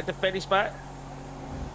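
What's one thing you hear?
A young man speaks briefly and excitedly into a close microphone.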